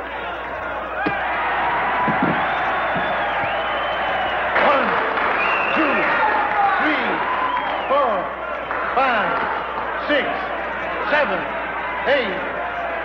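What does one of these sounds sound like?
A crowd cheers and roars in a large hall.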